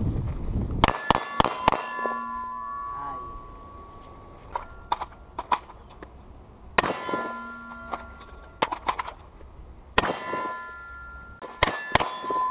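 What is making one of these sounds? Gunshots crack in quick bursts outdoors, with sharp echoing reports.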